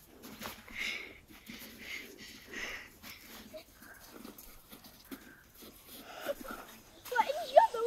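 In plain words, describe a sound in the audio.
Boots crunch in snow.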